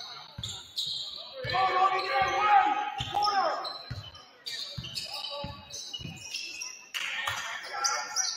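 A basketball bounces with dull thuds in a large echoing gym.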